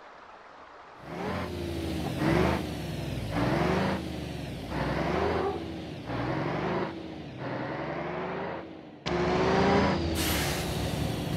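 A heavy diesel truck engine accelerates through the gears.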